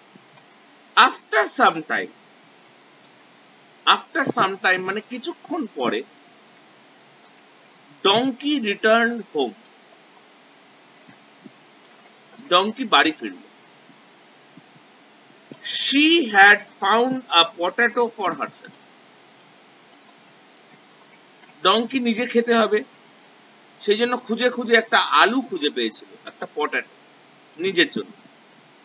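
A middle-aged man speaks close to a microphone in short bursts with pauses.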